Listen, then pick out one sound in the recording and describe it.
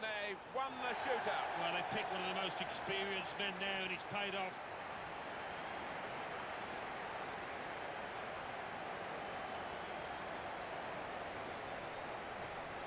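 A large stadium crowd cheers and roars steadily.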